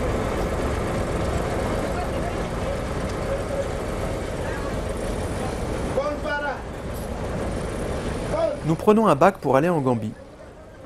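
A vehicle engine rumbles steadily nearby.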